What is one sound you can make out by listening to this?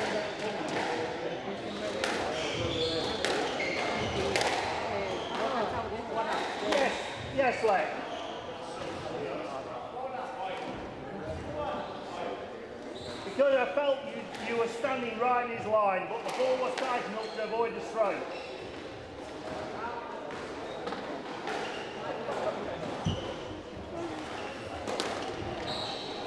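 Footsteps thud on a wooden floor in an echoing hall.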